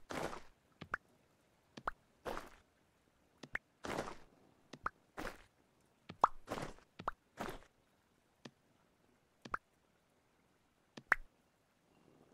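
Stone blocks thud and crunch as they are placed, in quick short bursts.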